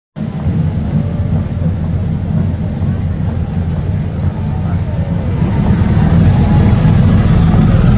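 A motorcycle engine idles and rolls past close by.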